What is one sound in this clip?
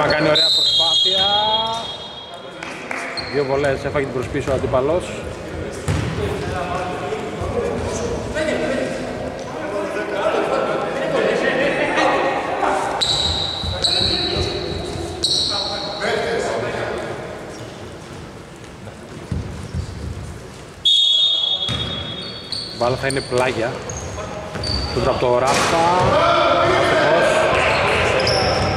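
Players shout and call out to each other across the hall.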